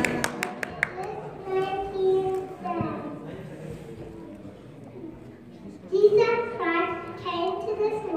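Young children sing into microphones over a loudspeaker.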